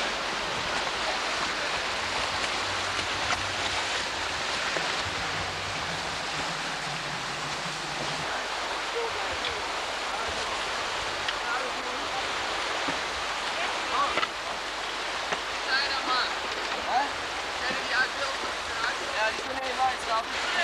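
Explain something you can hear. A kayak paddle splashes in the water.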